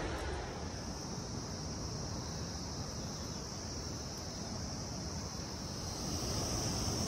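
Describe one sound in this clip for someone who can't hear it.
Wind blows and rustles through tall grass.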